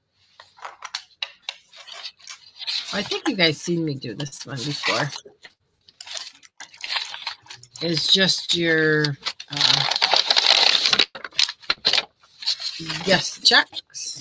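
Paper rustles and crinkles as hands sort through it.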